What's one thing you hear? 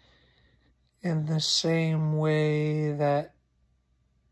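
A man makes a loud, drawn-out vocal sound close by.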